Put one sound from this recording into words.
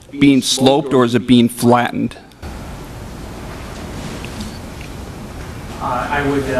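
A middle-aged man speaks calmly into a microphone.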